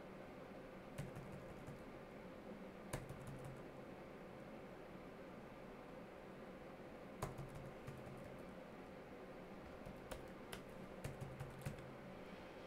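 Computer keys click now and then, close by.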